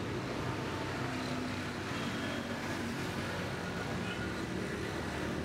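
Motorbikes and cars drive along a busy street.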